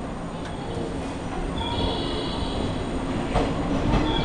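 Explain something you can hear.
An electric train pulls away, its rumble growing louder.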